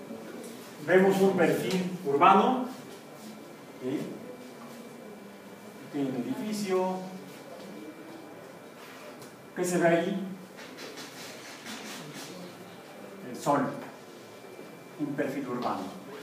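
A man speaks in short bursts, explaining calmly.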